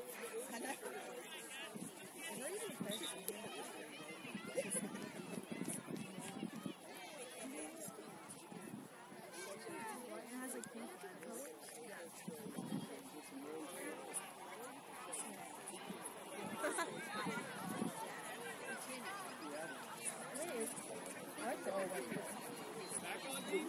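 A crowd of spectators chatters outdoors at a distance.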